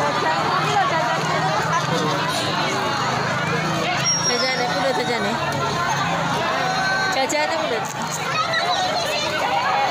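A large crowd of men and women chatters and shouts outdoors.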